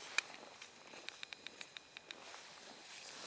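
A fishing reel clicks in quick, even ticks.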